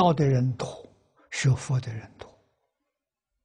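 An elderly man speaks calmly through a clip-on microphone, then falls silent.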